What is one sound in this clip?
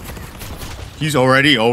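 A young man speaks loudly and with animation close to a microphone.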